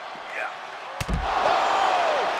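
A heavy body slams onto a hard floor with a thud.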